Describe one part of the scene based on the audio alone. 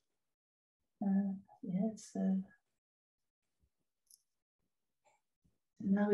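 An elderly woman speaks calmly through an online call.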